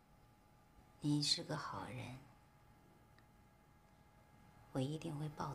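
A young woman speaks softly and gently, close by.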